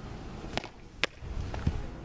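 A softball smacks into a catcher's mitt.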